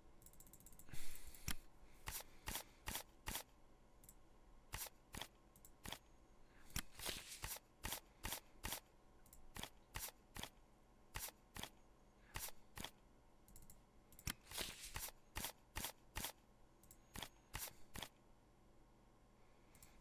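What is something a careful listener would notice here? Playing cards are dealt with quick, crisp snapping clicks.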